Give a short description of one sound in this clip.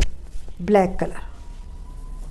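A middle-aged woman speaks briefly and calmly, close by.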